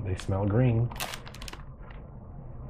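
A snack bag crinkles in a man's hands.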